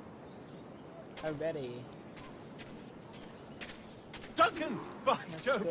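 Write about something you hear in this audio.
Footsteps walk softly over grass and dirt.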